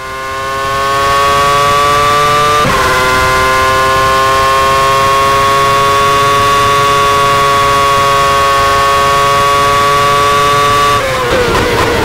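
A racing car engine screams steadily at high revs.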